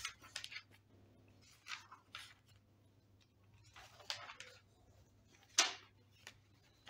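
Paper pages rustle and flip as they are turned.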